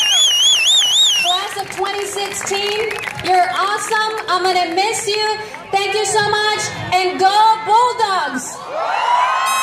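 A large outdoor crowd of young people cheers and shouts.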